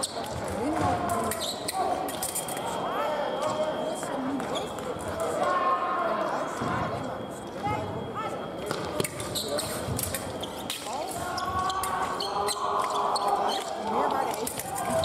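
Fencers' shoes stamp and squeak on the floor.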